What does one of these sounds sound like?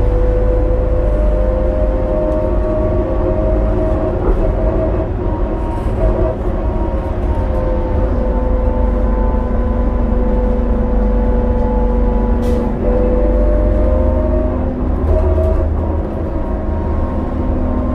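A bus engine hums and whines steadily while driving.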